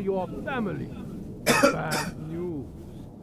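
A man speaks in a strained cartoonish voice.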